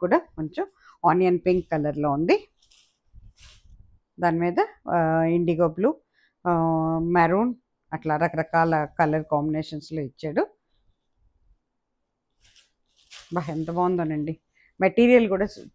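Fabric rustles as a sari is unfolded.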